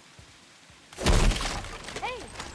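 A loud crash of something shattering bursts out.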